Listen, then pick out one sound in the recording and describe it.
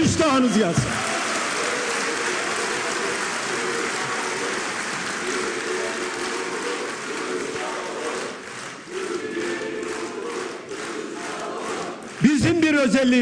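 A large crowd applauds.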